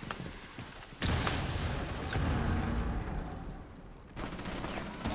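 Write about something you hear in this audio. A smoke grenade hisses loudly.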